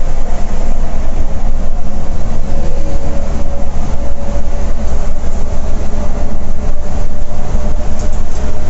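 A diesel coach engine drones at highway speed, heard from inside the cab.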